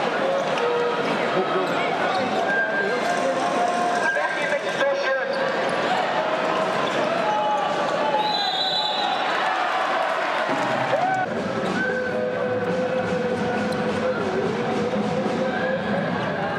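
A large crowd chants and cheers loudly in an echoing arena.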